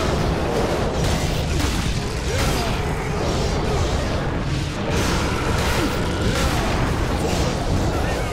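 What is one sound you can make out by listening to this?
Blades whir and clash in a close melee fight.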